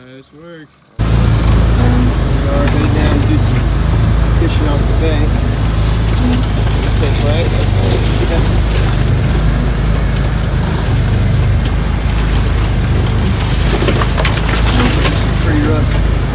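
An off-road vehicle's engine roars loudly.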